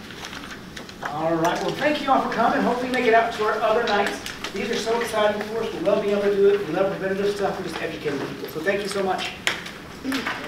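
A man speaks calmly to an audience in an echoing room.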